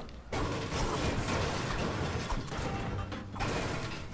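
A pickaxe strikes and smashes metal objects with heavy clangs.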